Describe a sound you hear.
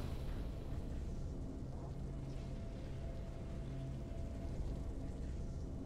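Triumphant game music plays.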